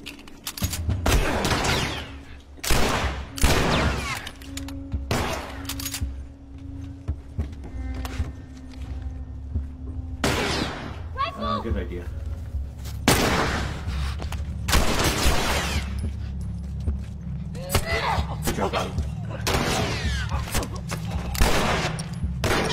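Gunshots ring out loudly, each followed by a short echo.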